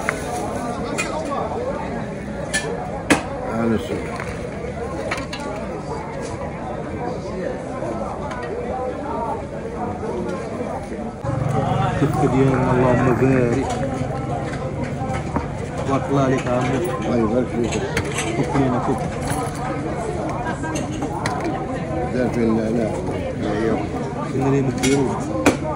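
A crowd murmurs in the distance outdoors.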